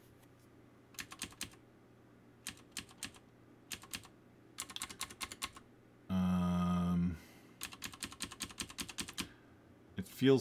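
Keys clatter on a computer keyboard.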